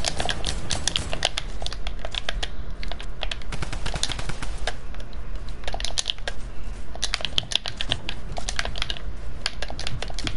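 Rapid building clicks and thuds clatter in quick bursts.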